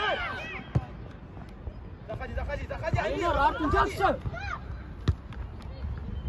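A football is kicked with a sharp thump.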